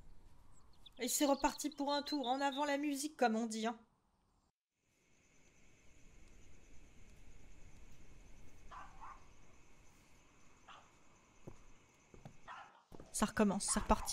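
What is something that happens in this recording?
A young woman talks with animation.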